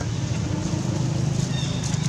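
A baby monkey squeals close by.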